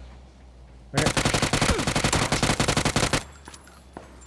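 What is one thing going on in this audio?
An automatic gun fires a rapid burst.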